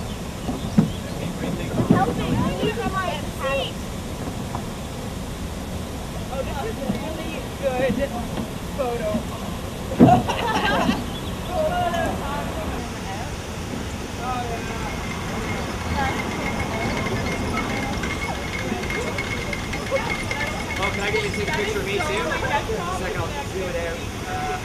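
Men and women chat and call out nearby, outdoors.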